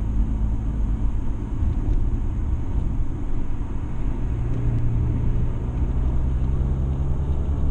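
Tyres roll on the road with a low rumble.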